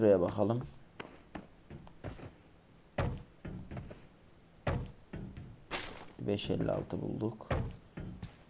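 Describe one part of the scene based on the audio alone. Footsteps thud on a metal surface.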